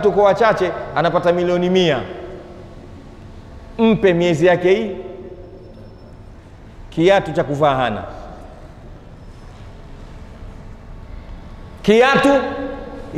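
A man speaks calmly into a microphone in short bursts with pauses.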